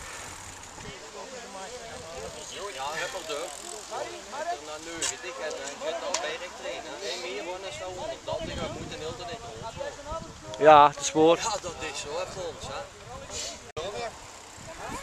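Several men talk casually close by outdoors.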